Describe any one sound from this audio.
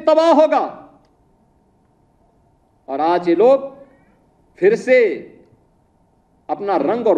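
A middle-aged man speaks forcefully into a microphone in bursts, with pauses between phrases.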